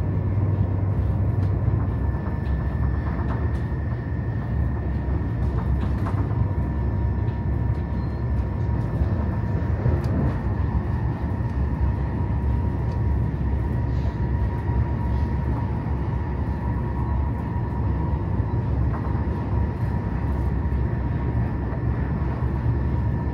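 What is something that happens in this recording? Train wheels click and knock on the rail joints.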